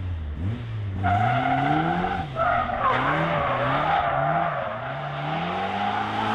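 Tyres squeal on tarmac as a car pulls away.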